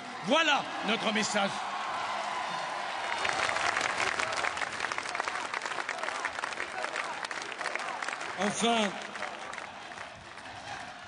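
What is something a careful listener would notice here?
A large crowd cheers and claps outdoors.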